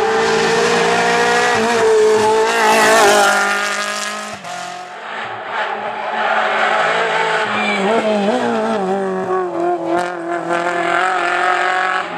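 Gravel sprays from a rally car's tyres.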